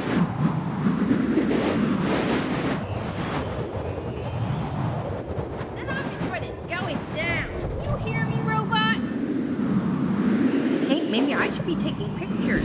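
A low rushing whoosh fills the background.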